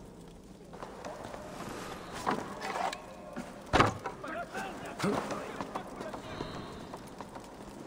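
A character climbs a wooden ladder with creaking, knocking steps.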